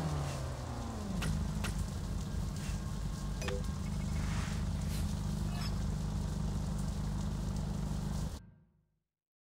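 A sports car engine idles with a low, steady rumble.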